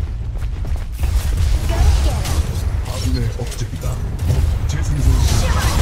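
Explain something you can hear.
Weapons clash and magic blasts burst in a rapid fight.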